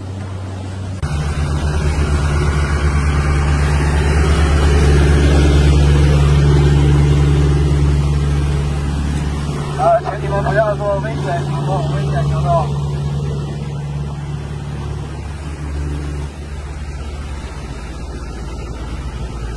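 A boat engine roars steadily close by.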